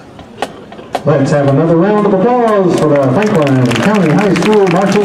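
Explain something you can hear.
A marching band plays loud brass.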